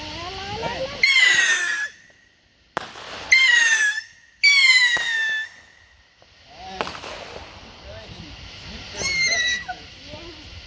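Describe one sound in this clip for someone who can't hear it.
A firework whistles shrilly several times, each whistle falling in pitch.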